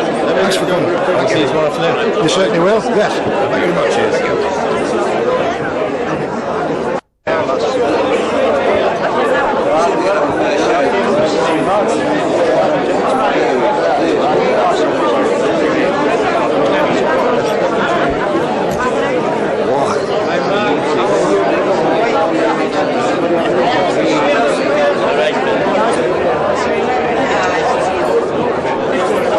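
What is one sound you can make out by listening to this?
A crowd of men and women chatters in a large room.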